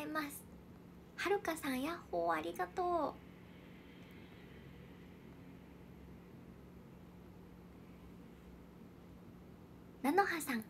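A young woman speaks brightly and close to a microphone, in short bursts.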